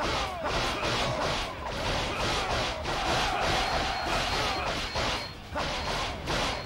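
Swords slash and clang in rapid, repeated strikes.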